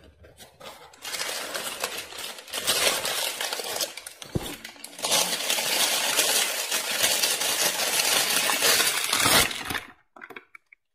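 A plastic bag crinkles loudly as it is handled.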